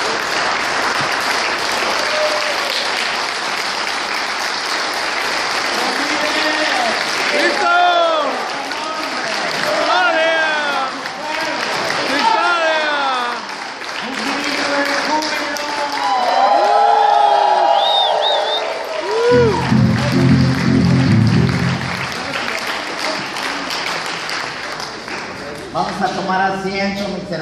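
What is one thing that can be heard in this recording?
A man sings loudly through a microphone in a large echoing hall.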